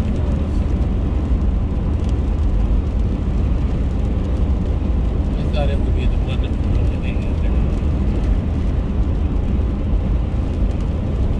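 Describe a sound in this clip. Tyres hiss on a wet road.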